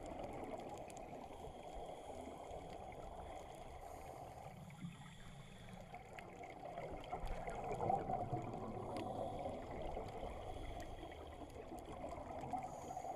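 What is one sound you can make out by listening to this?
A diver breathes in through a regulator with a hiss.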